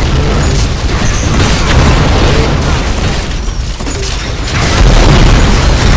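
An energy weapon fires a crackling blast.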